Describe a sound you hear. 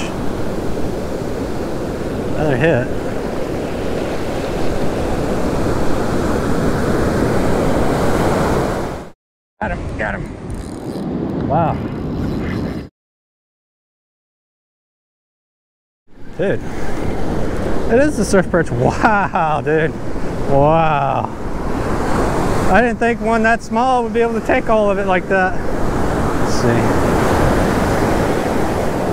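Waves break and wash steadily onto a beach close by.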